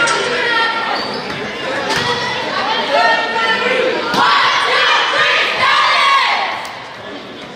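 Young girls in a huddle chant and cheer loudly together in an echoing hall.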